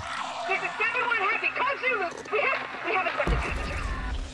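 A man shouts urgently over a radio.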